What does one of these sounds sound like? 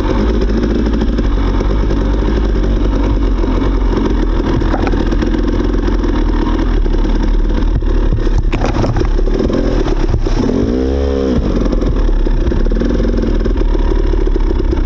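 A dirt bike engine drones close by as the bike rides along a muddy trail.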